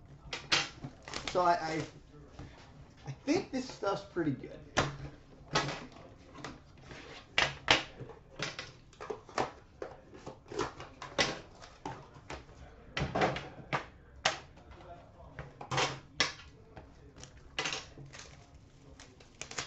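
Hands handle cardboard and tin boxes, with knocks and clatter.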